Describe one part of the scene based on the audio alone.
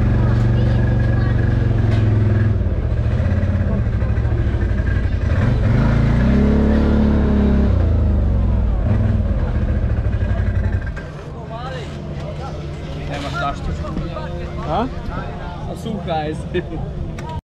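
A crowd of men and women chatters in the open air.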